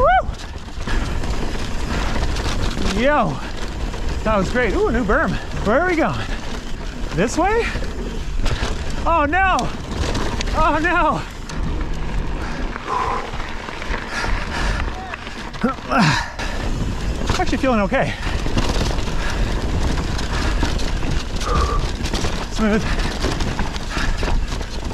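Bicycle tyres rumble and crunch over a dirt and gravel trail.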